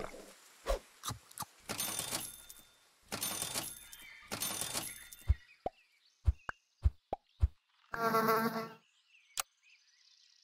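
Game sound effects pop and click as pieces are bought and moved.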